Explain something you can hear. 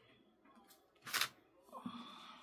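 Card is peeled off paper with a short rasp.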